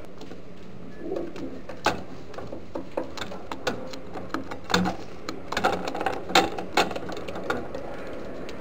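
A pigeon pecks and scratches at a wooden floor with sharp taps.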